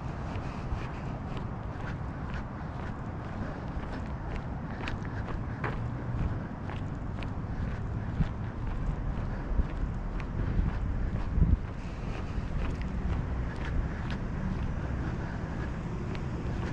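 Wind rumbles outdoors in gusts.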